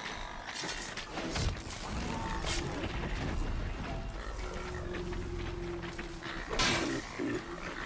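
A spear strikes metal with sharp clanging hits.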